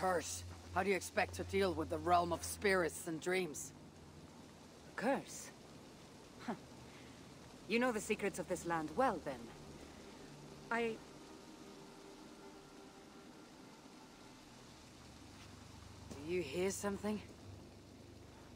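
A woman speaks calmly and challengingly.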